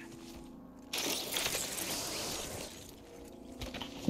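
A zipline whirs and hisses during a fast slide.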